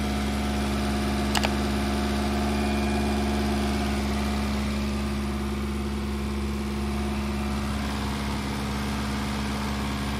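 A car engine idles with a steady hum and rattle.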